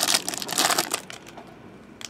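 A plastic wrapper crinkles as it is torn open.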